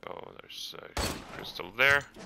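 A shotgun fires once with a loud blast.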